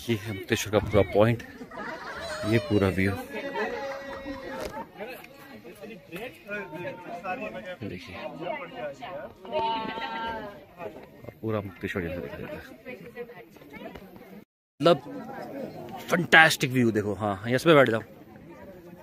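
Young men and women chat nearby.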